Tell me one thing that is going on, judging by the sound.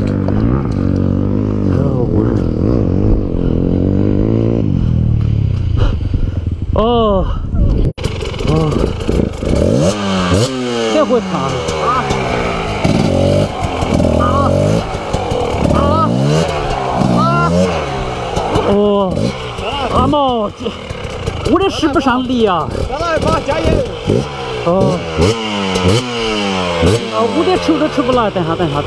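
A motorbike engine revs hard again and again.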